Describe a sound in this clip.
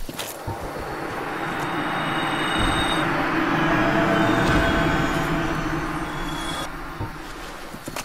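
A bright shimmering magical tone swells and then fades.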